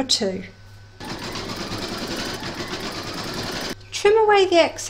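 A sewing machine stitches steadily with a fast whirring rattle.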